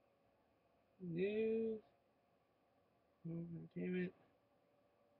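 A young man speaks in short bursts, close to a webcam microphone.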